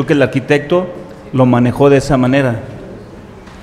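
A man speaks clearly through a microphone.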